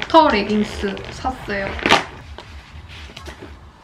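Plastic packaging rustles and crinkles.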